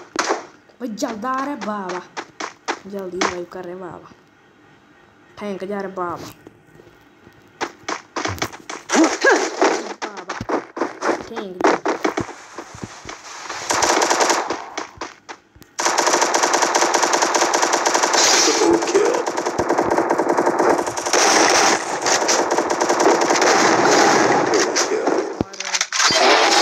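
Rapid gunshots crack repeatedly.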